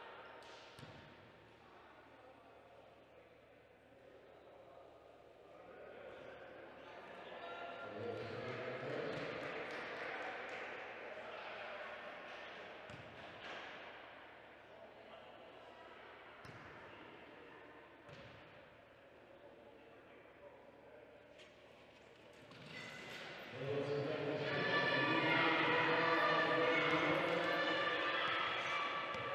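A crowd in a large echoing hall murmurs and cheers.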